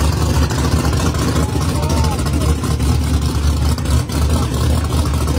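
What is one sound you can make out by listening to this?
A car engine rumbles loudly and deeply close by.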